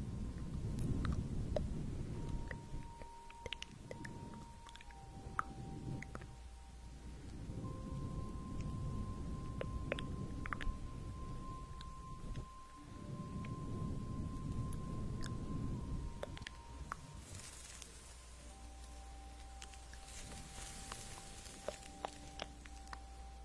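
A young woman whispers softly, very close to a microphone.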